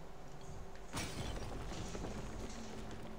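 A door bursts open with a crash.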